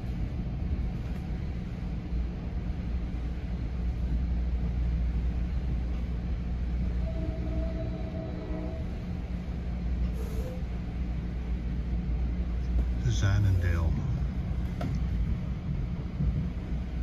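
A vehicle's engine rumbles low and steady from inside as it drives along.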